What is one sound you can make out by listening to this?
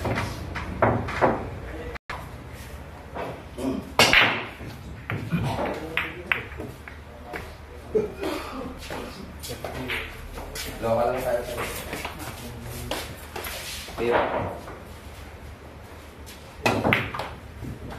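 A cue strikes a pool ball sharply.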